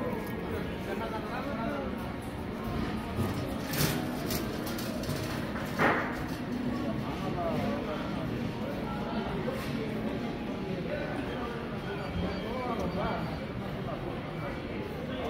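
A busy crowd murmurs with distant chatter in a large echoing hall.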